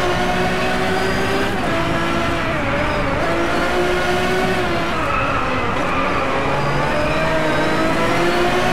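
A supercar racing engine roars at high speed, shifting gears.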